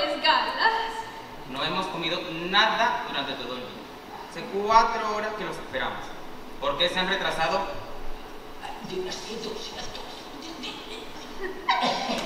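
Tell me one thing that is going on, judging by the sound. A young woman speaks with animation on a stage, heard in a large hall.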